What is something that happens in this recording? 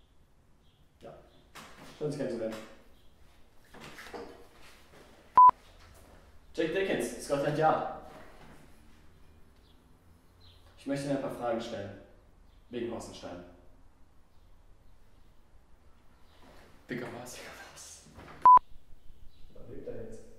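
A young man speaks firmly, close by.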